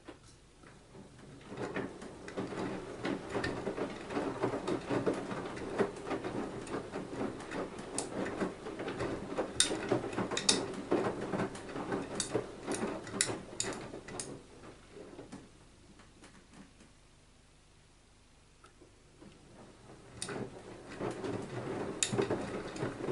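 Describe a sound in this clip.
Water sloshes and splashes inside a turning washing machine drum.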